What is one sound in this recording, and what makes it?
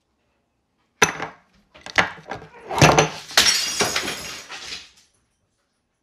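Glass smashes and shatters on a hard counter.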